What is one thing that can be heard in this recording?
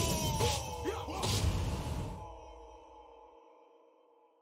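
A fiery blow whooshes and bursts.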